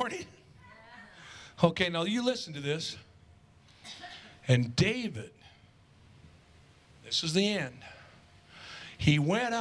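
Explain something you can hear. A middle-aged man speaks with animation through a microphone in an echoing room.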